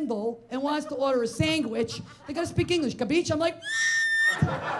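A woman speaks with animation into a microphone, heard through a loudspeaker.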